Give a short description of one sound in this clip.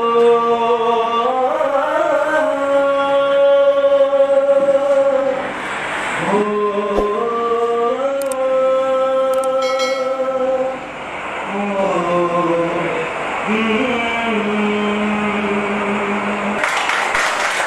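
A young man sings with long held notes close by.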